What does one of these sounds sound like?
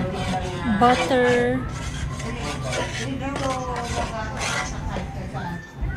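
A wooden spatula scrapes across a metal pan.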